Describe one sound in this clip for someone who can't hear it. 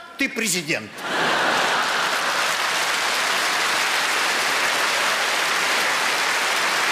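A large audience applauds loudly and steadily.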